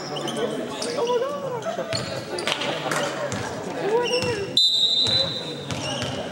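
A volleyball bounces on a wooden floor.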